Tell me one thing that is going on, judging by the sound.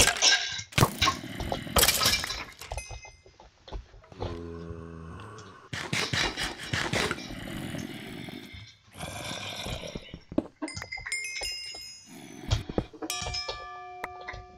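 A pickaxe chips repeatedly at stone.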